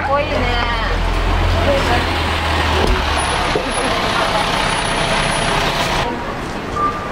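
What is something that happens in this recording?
A bus pulls up close by, its engine rumbling.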